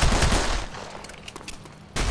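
A pistol's magazine clicks and rattles during a reload.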